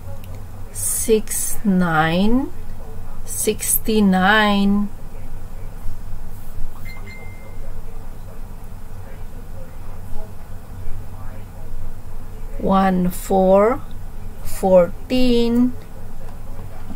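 A middle-aged woman speaks through a computer microphone.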